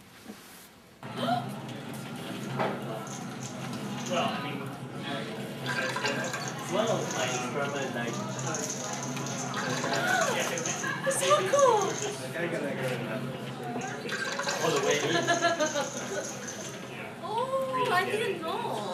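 Several men and women talk nearby in a room.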